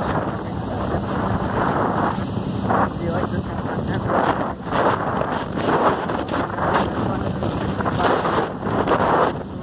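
Wind blows hard and rumbles outdoors.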